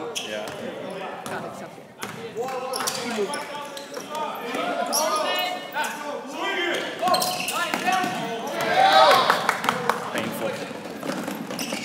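Spectators talk and call out nearby in an echoing gym.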